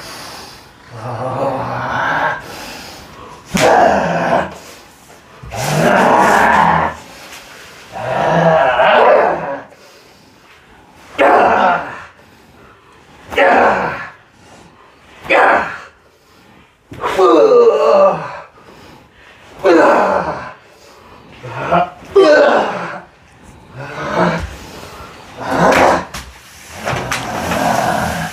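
A man calls out loudly in short, rising and falling bursts nearby.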